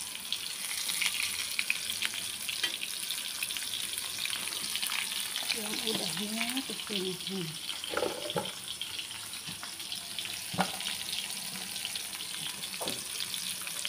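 A metal spatula scrapes against a pan.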